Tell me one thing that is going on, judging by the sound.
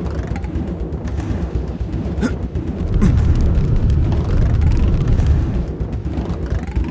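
Upbeat video game music plays steadily with a thumping beat.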